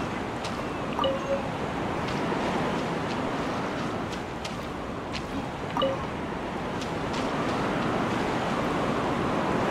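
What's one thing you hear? Footsteps patter on rock.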